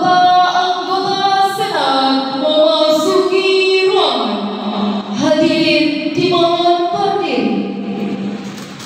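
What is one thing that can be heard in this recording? A choir sings loudly in a large echoing hall, then stops.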